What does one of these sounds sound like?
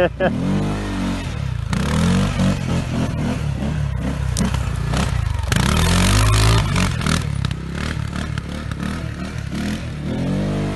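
An all-terrain vehicle engine revs hard, rising and falling in pitch.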